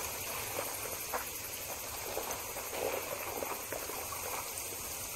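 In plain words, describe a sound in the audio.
Footsteps crunch on rocky ground at a steady walking pace.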